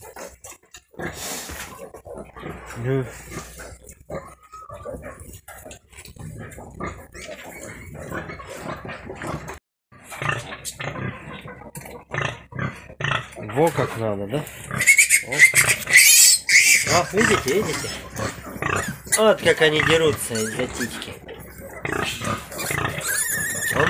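Piglets squeal and grunt close by.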